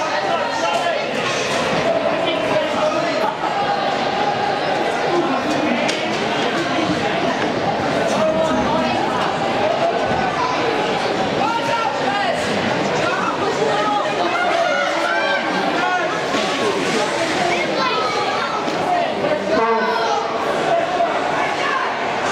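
Ice skates scrape and carve across the ice.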